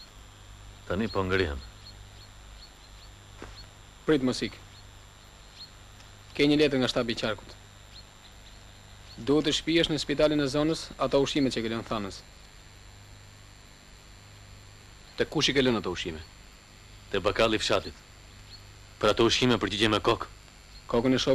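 A man speaks calmly and in short phrases, close by, with pauses between.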